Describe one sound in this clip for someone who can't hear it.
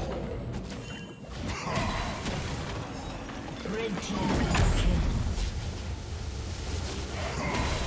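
Game spell effects whoosh and crash in a fight.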